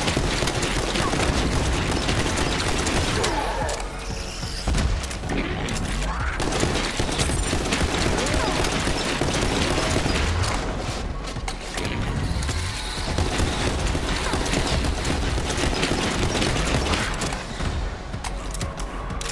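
Rapid gunfire rattles again and again.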